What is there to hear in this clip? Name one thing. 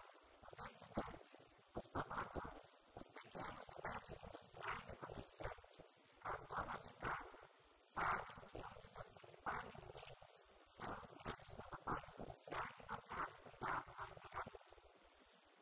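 A young woman speaks calmly into a microphone in an echoing room.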